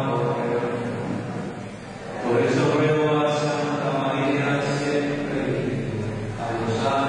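Music plays loudly through loudspeakers in an echoing hall.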